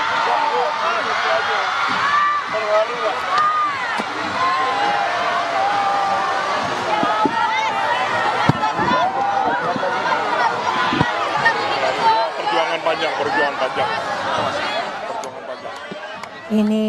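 A large crowd cheers and shouts excitedly outdoors.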